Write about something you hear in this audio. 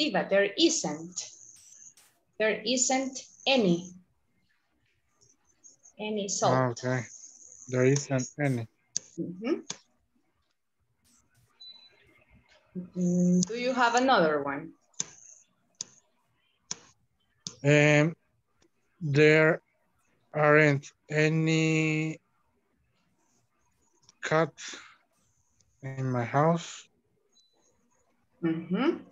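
A woman speaks clearly over an online call.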